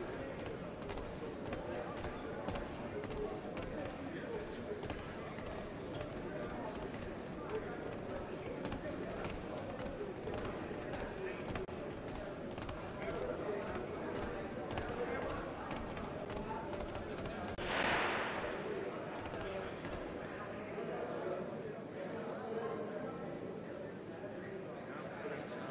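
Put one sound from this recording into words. Footsteps pad across creaking wooden boards and stairs.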